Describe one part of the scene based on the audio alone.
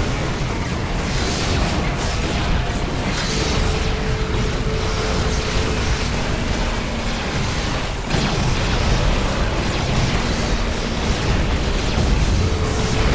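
Gunfire and laser blasts crackle continuously in a battle.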